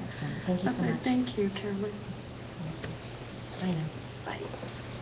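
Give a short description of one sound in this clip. A woman talks warmly close by.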